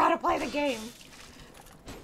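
A sword strikes flesh with a wet slash.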